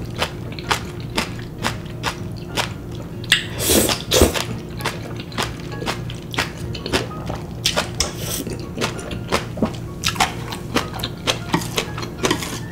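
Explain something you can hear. A young woman chews wet food with smacking sounds, close up.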